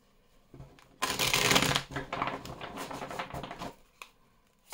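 A deck of cards is riffled and bridged.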